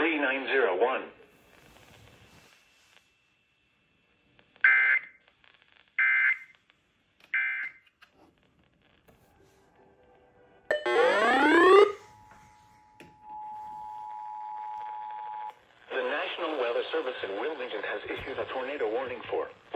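An automated voice reads out a message through a small radio speaker.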